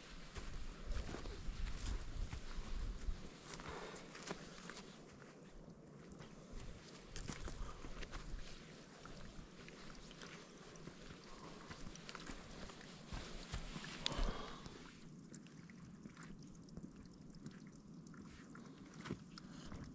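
Footsteps crunch on dry grass and stones.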